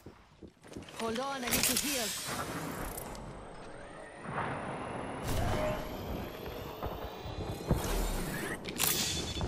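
A medical kit hisses and whirs as it is used.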